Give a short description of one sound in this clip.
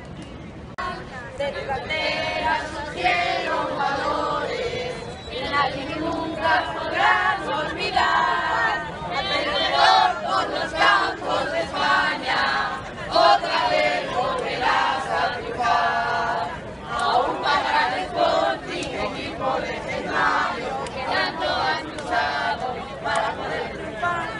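A crowd of men and women sings and chants loudly outdoors.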